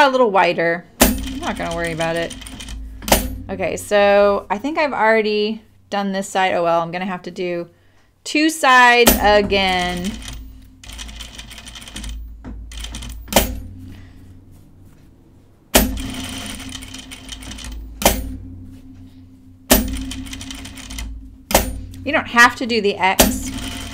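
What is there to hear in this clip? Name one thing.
A sewing machine whirs and stitches in steady runs.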